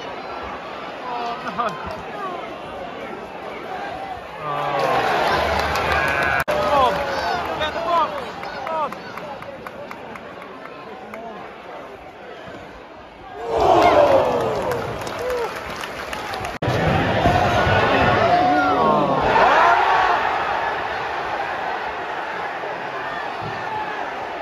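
A large stadium crowd murmurs and chants outdoors.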